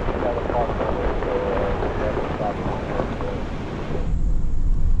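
Tyres crunch on gravel outdoors in wind.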